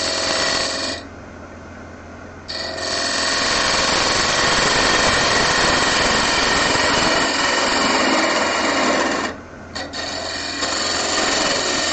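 A gouge scrapes and shaves spinning wood, pausing briefly now and then.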